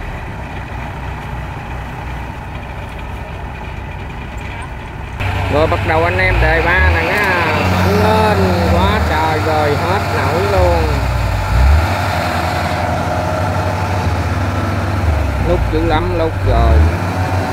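A combine harvester engine rumbles steadily nearby.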